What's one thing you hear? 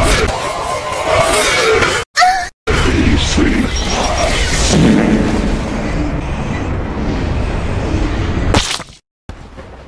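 A chainsaw revs and tears through flesh.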